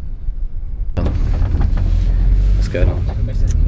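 A young man talks casually inside a car.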